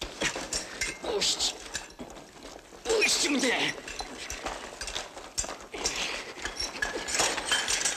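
A man grunts and gasps with effort close by.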